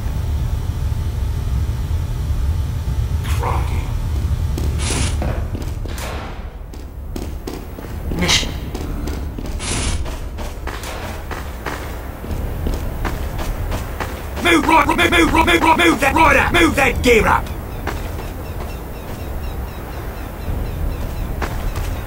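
Footsteps tap quickly across a hard floor.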